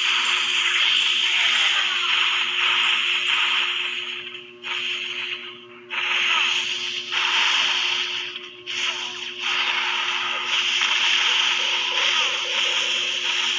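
Buildings crash and explode.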